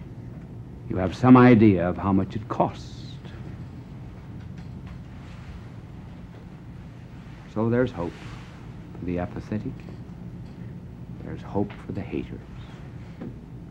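An elderly man speaks slowly and deliberately, heard through a microphone, with long pauses.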